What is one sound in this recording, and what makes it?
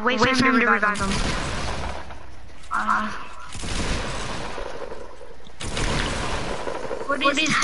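Gunfire bursts out loudly.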